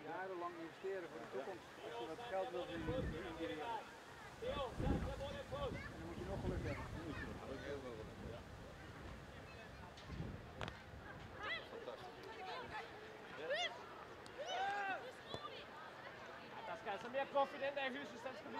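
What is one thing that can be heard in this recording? Young men shout to each other across an open outdoor field, heard from a distance.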